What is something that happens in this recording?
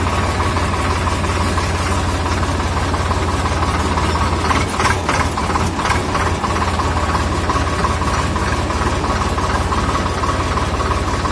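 A tractor's diesel engine chugs steadily up close.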